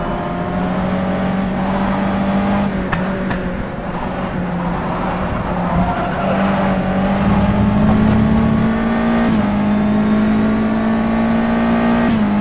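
A racing car engine drones steadily at high revs, its pitch shifting with gear changes.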